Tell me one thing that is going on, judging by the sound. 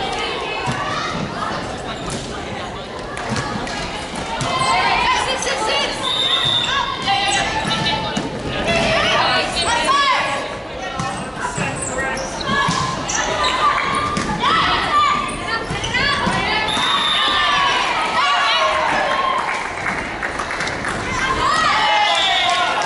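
Shoes squeak on a wooden court floor.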